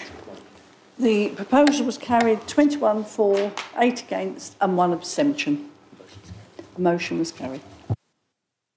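An older woman speaks calmly through a microphone.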